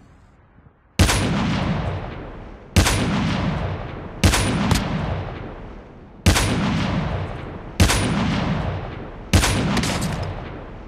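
A rifle fires loud booming shots that echo and fade.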